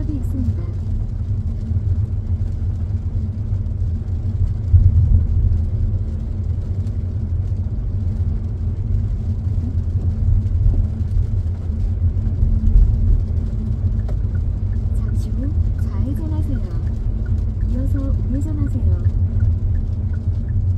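Rain patters on the windshield.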